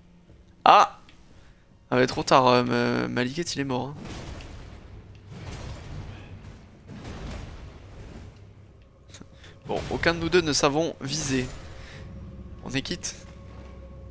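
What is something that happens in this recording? Heavy blows and crashes thud and clang in a fight.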